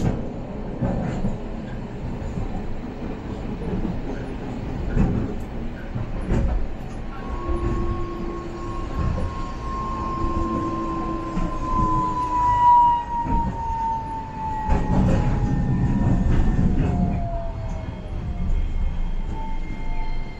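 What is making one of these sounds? A tram rumbles and rattles along its rails, heard from inside the cab.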